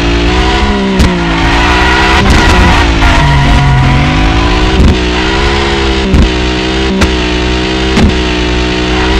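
A car exhaust pops and bangs.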